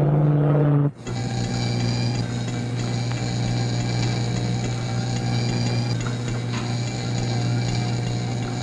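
An electrical device hums steadily with a high whine.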